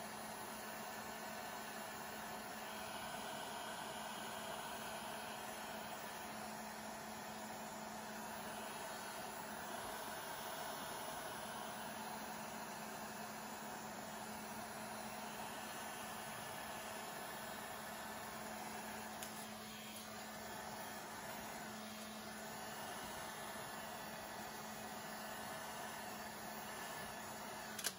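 A heat gun blows with a steady whirring roar.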